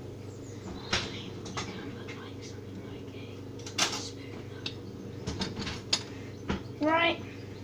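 Objects clatter and knock as a boy rummages nearby.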